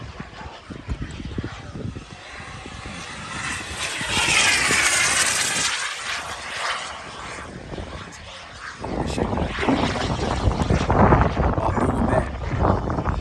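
A jet roars overhead, rising and then fading as it passes.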